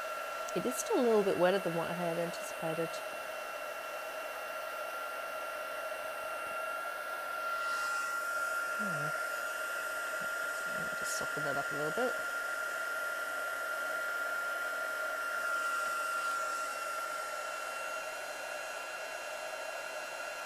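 A heat gun blows with a steady, high whirring hum.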